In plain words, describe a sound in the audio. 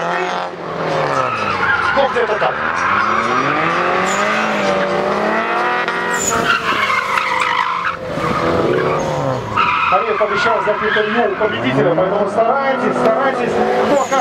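Tyres squeal on asphalt.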